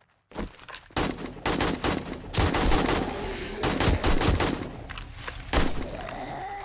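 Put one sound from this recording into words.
A gun fires a burst of loud shots.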